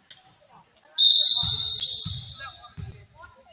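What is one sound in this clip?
A referee's whistle blows one long shrill blast.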